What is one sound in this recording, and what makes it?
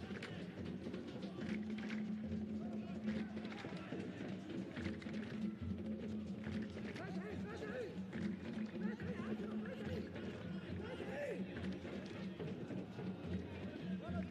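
Young men shout and call to each other across an open pitch, from a distance.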